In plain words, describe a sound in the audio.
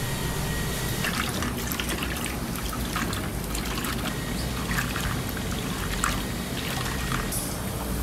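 A hand splashes in simmering liquid.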